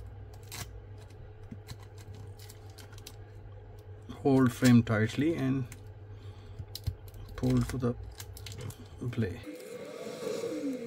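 A plastic pry tool scrapes and clicks against a phone's battery.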